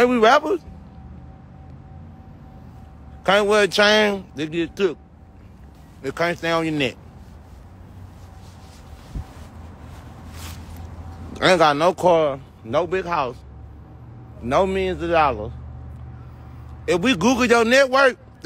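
A young man speaks loudly and with animation close to a phone microphone, in short bursts.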